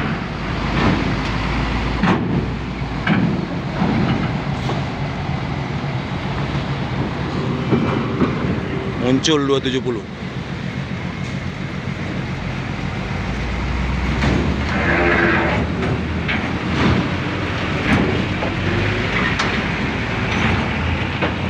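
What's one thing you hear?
A truck engine idles and rumbles close by.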